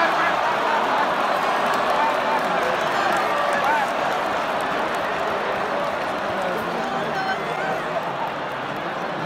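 Nearby spectators call out and chant.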